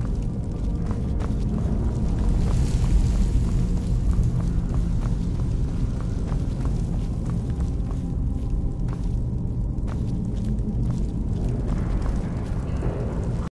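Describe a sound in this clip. Footsteps tread steadily on a stone floor.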